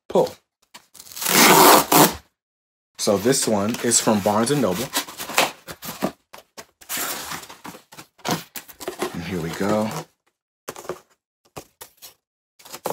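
Cardboard rustles and scrapes as a package is torn open.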